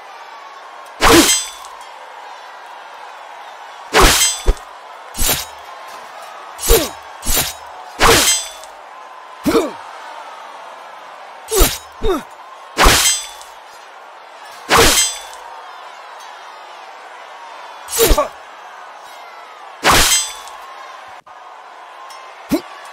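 Swords swing and strike in sharp, repeated hits.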